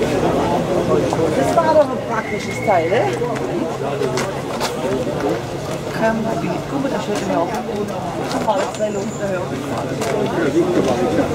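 Men and women chatter nearby in a crowd outdoors.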